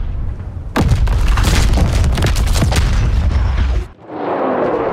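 Heavy ship guns fire with deep, booming blasts.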